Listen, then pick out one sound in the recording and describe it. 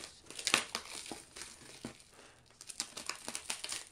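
Scissors snip through plastic packing tape.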